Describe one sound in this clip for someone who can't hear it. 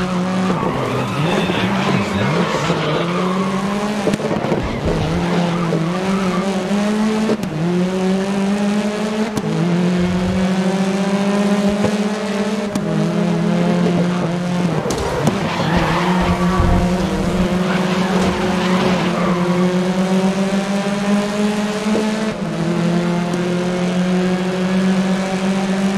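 A racing car engine roars loudly and revs up again and again with each gear change.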